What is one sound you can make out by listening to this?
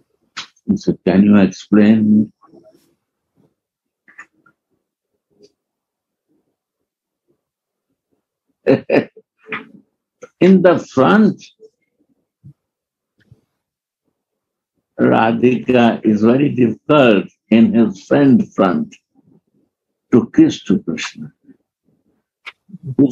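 An elderly man speaks calmly and with long pauses, close to a microphone.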